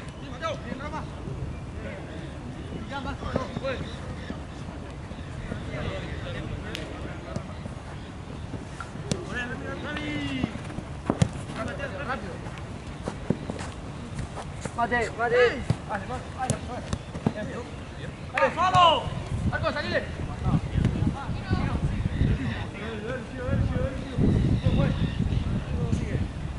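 Young men shout to each other outdoors during a football game.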